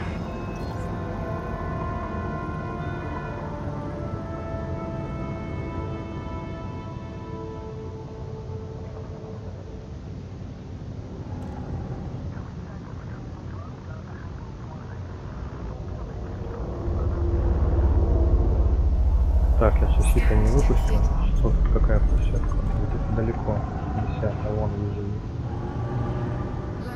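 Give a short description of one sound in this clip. A spaceship engine hums low and steady, swelling into a deep rumble midway.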